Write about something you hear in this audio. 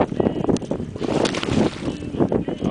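A large fish splashes at the water's surface beside a boat.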